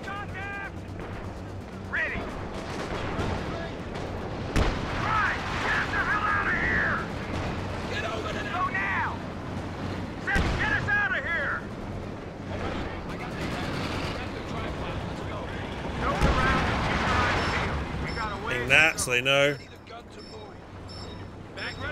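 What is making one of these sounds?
Gunfire and explosions rumble from a battle game.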